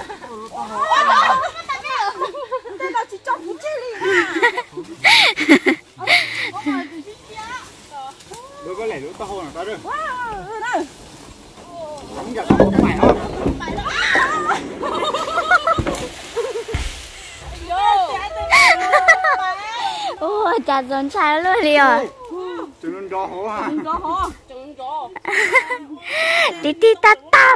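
Several women talk and call out to each other outdoors.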